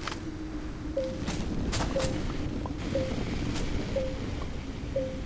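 Short electronic chirps repeat at a steady pace.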